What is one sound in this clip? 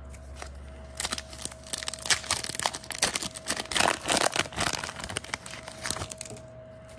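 A foil wrapper crinkles and tears as it is torn open.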